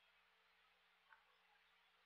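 A game stone clicks onto a wooden board.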